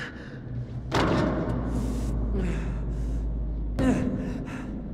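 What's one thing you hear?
Feet thud heavily onto a metal drum.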